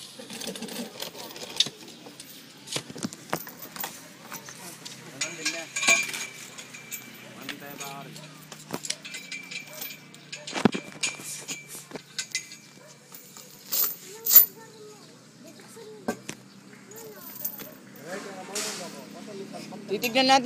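Young men talk nearby, outdoors.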